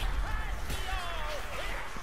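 A sword slashes and strikes flesh.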